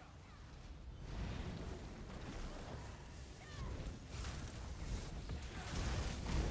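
Spells and weapons clash loudly in a fast fight.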